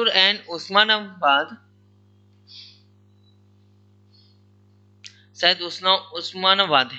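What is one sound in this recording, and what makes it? A man lectures calmly into a close microphone.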